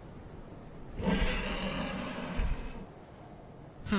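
A huge beast roars loudly, then fades.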